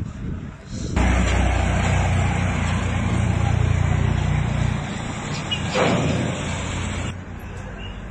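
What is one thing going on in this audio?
A tractor engine rumbles loudly nearby.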